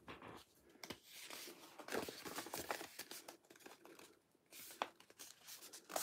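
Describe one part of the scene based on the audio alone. A hand taps and brushes against a tabletop close by.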